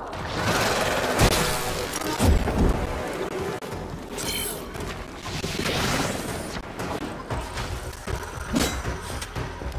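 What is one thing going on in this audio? A sword slashes and strikes with heavy thuds.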